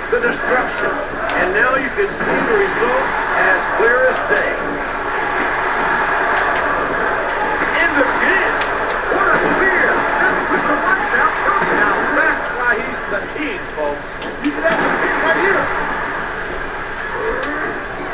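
Bodies thud heavily onto a wrestling ring mat.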